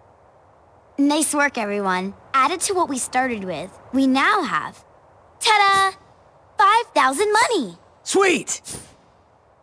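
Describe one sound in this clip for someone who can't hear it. A young woman speaks cheerfully and brightly.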